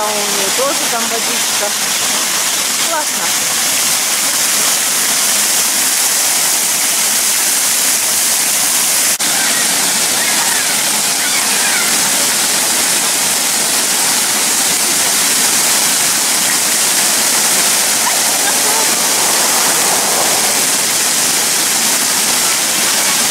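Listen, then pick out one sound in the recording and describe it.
Water splashes steadily from a pool fountain.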